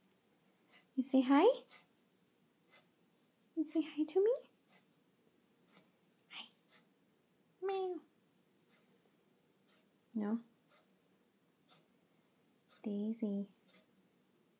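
A cat meows loudly and plaintively, again and again, close by.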